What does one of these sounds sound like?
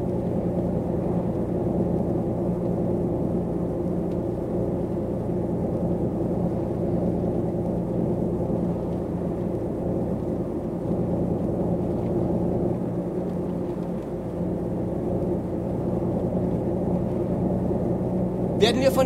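A bus engine drones steadily at cruising speed.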